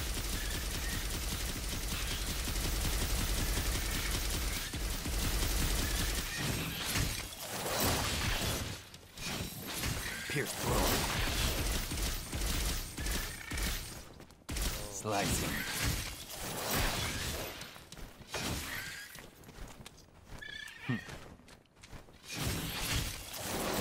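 Magic blasts crackle and burst.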